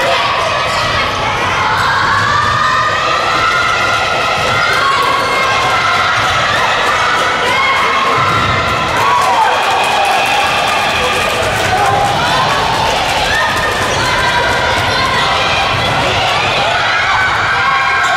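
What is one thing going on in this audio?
A crowd of young spectators chatters and shouts in a large echoing hall.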